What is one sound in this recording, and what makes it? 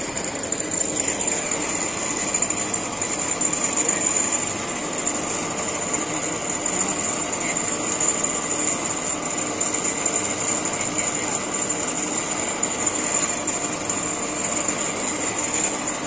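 An overhead crane's electric motor hums and whines steadily.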